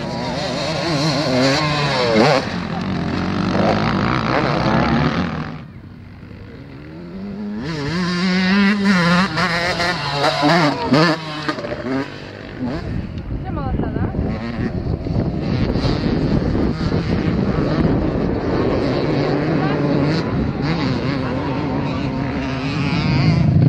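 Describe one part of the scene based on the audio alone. A dirt bike engine revs and whines up and down nearby.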